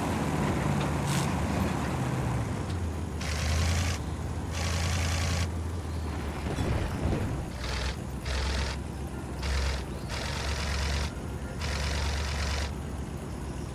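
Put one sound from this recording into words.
A car engine revs hard in short bursts.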